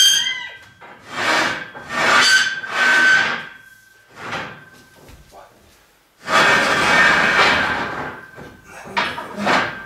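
A girl exhales forcefully in short bursts with effort.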